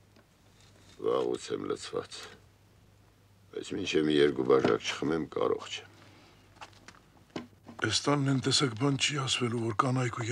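A middle-aged man talks with animation.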